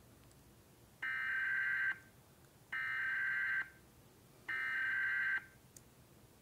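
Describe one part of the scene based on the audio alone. A harsh electronic alert buzz sounds three times from a small speaker.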